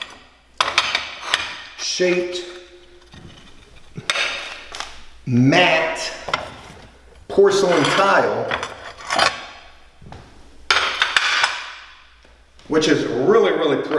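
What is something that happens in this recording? Ceramic tiles clink against each other as they are handled.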